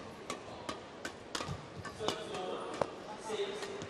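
A shuttlecock is struck back and forth in a large echoing hall.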